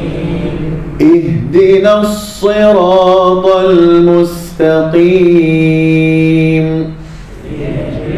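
A man chants in a long, melodic voice into a microphone.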